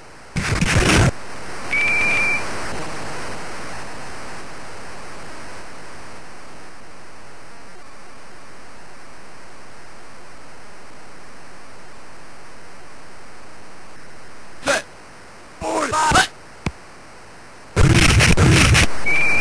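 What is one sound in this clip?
Football players crash together in a tackle in a video game.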